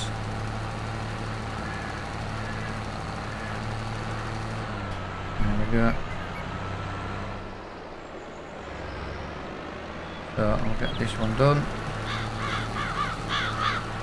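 A tractor engine hums steadily.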